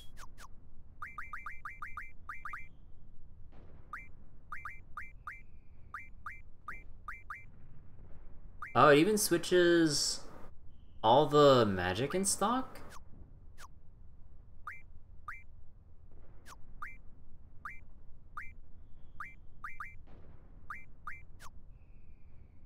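Short electronic menu blips chirp quickly, again and again.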